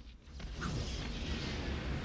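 Electricity crackles and fizzes.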